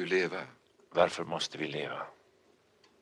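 Another man asks a question in a strained voice, close by.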